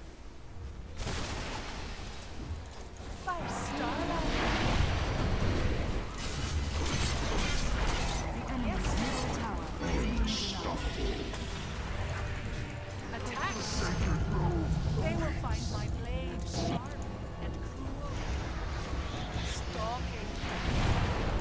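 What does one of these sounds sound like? Spells and blows burst and clash loudly in a fight.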